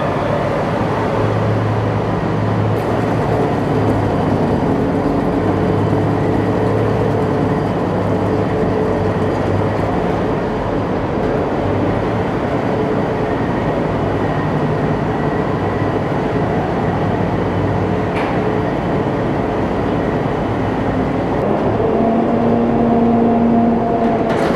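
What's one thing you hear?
The diesel engine of an amphibious assault vehicle rumbles in a large echoing hold.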